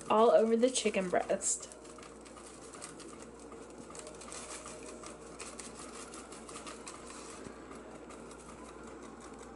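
Dry seasoning crumbs patter softly onto raw meat.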